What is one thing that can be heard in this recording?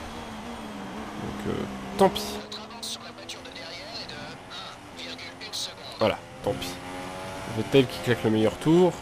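A racing car engine whines and changes pitch as the car speeds up.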